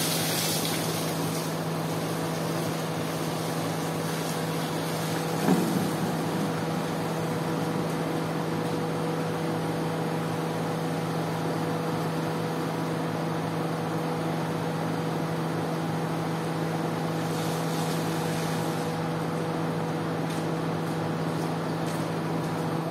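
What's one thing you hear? A pump motor hums steadily.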